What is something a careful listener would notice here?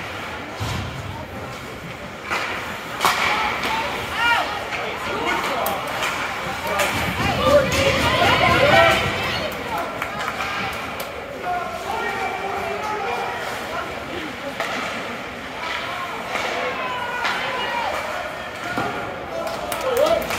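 Spectators cheer and shout in an echoing rink.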